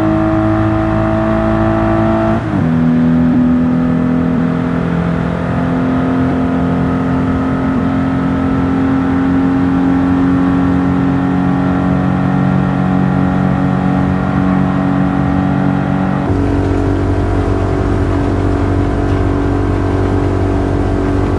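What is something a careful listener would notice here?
A turbocharged straight-six sports car engine drones at speed.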